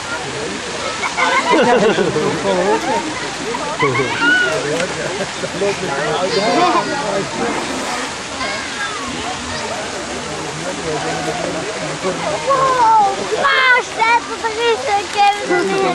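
Children squeal and shout excitedly.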